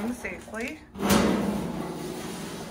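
A metal lid clanks and rings briefly.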